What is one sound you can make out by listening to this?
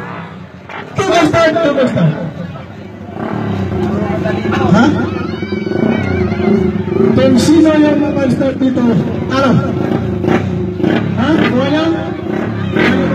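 A man speaks with animation over a loudspeaker.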